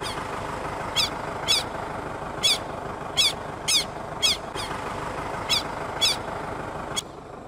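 A bird calls with loud, sharp, repeated cries.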